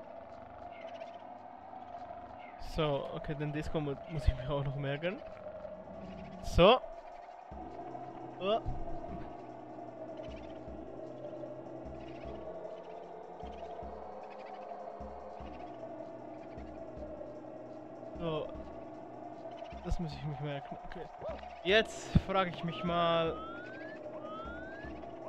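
Steady video game music plays throughout.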